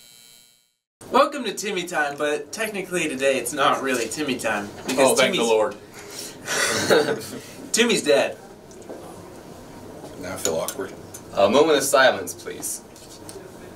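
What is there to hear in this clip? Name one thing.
Young men laugh close by.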